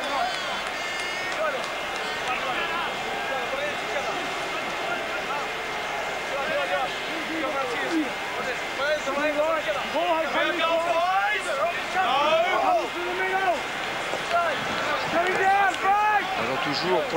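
A large stadium crowd roars and cheers steadily, growing louder.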